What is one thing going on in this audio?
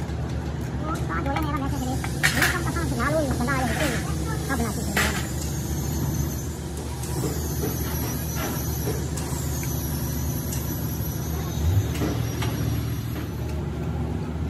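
Metal engine parts clink and clatter as they are handled.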